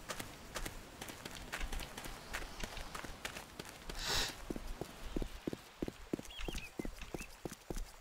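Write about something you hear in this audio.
Footsteps tread steadily over soft ground and leaves.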